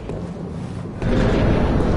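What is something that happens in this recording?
A loud gust of wind rushes in.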